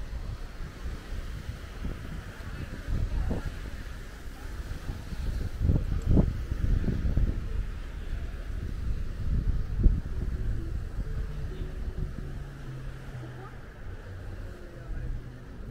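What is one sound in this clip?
Wind blows outdoors, rumbling on the microphone.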